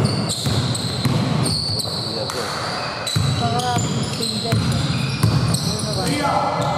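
Sneakers squeak on a wooden floor in a large echoing hall.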